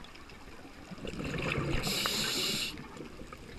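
A diver breathes out through a regulator underwater, with bubbles rushing and gurgling loudly.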